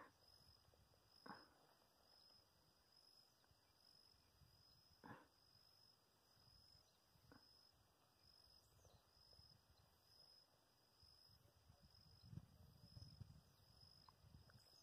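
Wind rumbles and buffets outdoors, gusting stronger near the end.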